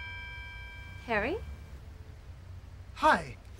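A young man exclaims in short, rising bursts up close.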